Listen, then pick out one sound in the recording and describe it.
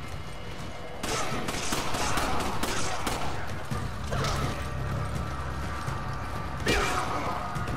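Pistol shots ring out sharply.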